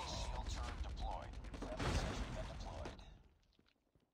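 Loud gunfire and blasts roar in a rush of noise, then stop.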